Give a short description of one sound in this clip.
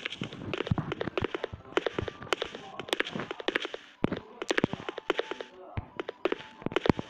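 Footsteps thud on a hard floor in an echoing room.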